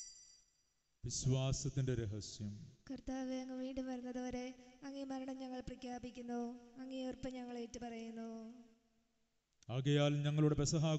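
A man sings a chant through a microphone.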